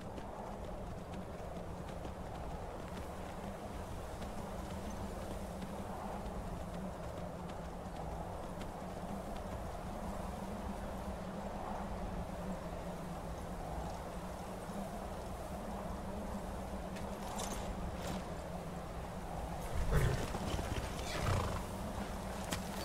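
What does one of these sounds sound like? A snowstorm wind howls steadily outdoors.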